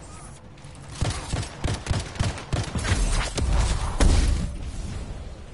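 Rapid gunshots and blasts crack in quick bursts.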